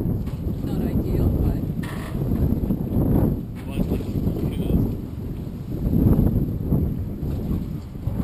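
Water laps and splashes against a boat.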